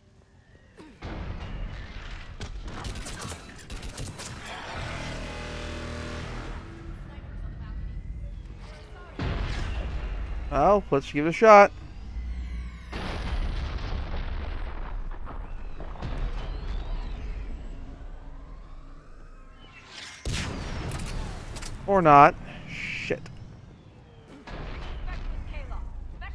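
Gunfire cracks and booms in bursts.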